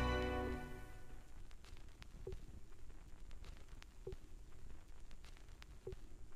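A stylus crackles and thumps in a record's end groove at a steady, slow beat.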